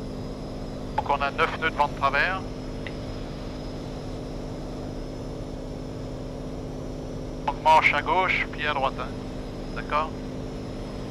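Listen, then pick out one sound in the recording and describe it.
A middle-aged man speaks calmly through a headset intercom.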